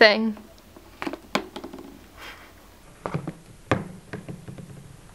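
Small plastic toys tap and knock against a hard surface.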